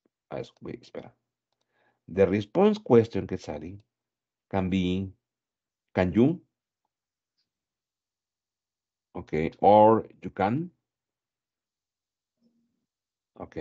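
A man speaks calmly through a headset microphone, heard over an online call.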